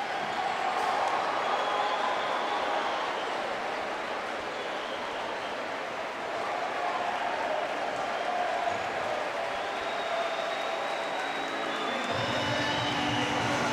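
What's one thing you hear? Young men shout and celebrate loudly nearby.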